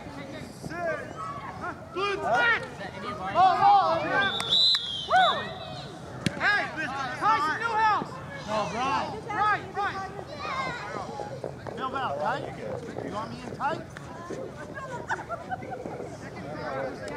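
Several young men shout and call to each other outdoors in the open.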